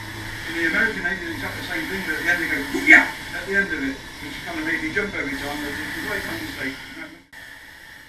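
A man speaks calmly to a group nearby.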